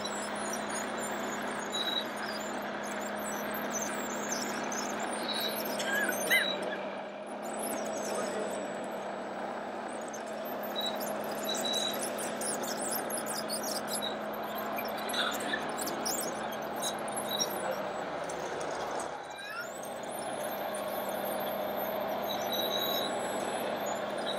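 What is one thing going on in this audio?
A small model bulldozer's electric motor whines steadily.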